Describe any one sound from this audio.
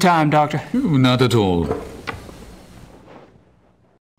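A middle-aged man speaks calmly, with a slight echo.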